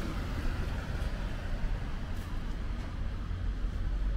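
A small truck drives past on the road.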